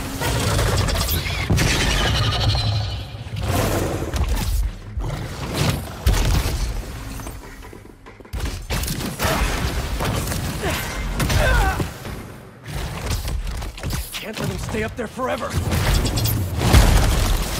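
Web lines zip and snap.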